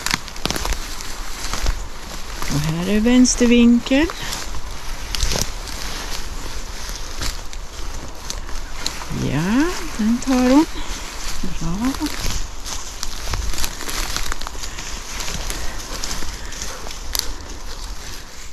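Footsteps rustle through low leafy undergrowth.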